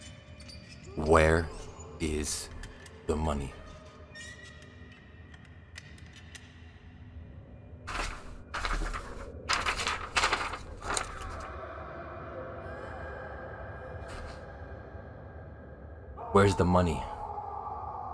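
A young man speaks close by, in short bursts.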